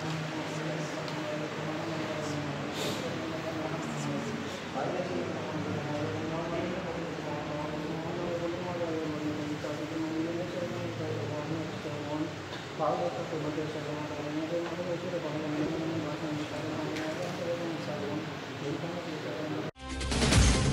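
A man chants a prayer in a steady, melodic voice, heard through a loudspeaker in an echoing room.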